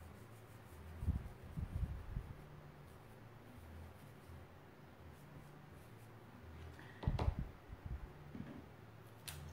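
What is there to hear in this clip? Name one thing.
Low thumps and bumps sound against a tabletop.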